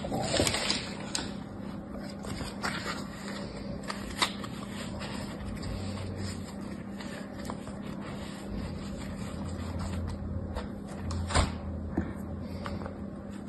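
A plastic mould taps and scrapes against a plastic tray.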